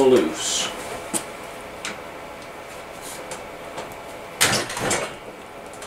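Metal engine parts clank and knock.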